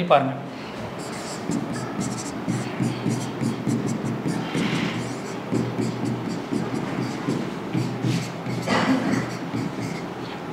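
A marker squeaks and taps against a board.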